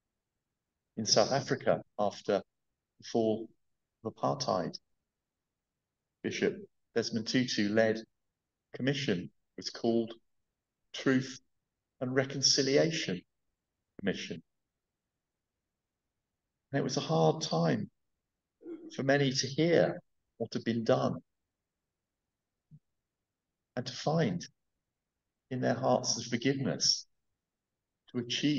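A middle-aged man speaks slowly and expressively through a headset microphone, with pauses.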